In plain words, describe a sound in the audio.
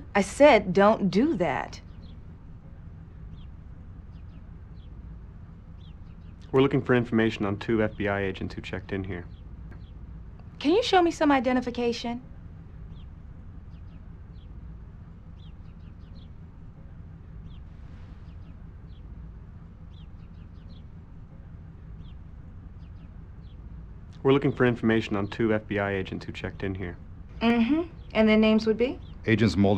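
A young woman speaks calmly, close by.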